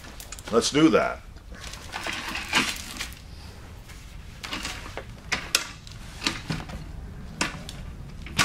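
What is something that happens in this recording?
A wooden chair creaks and knocks as it is moved and tipped over.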